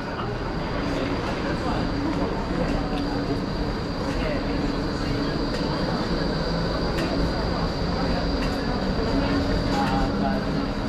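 A steady hum of city crowd chatter fills the air outdoors.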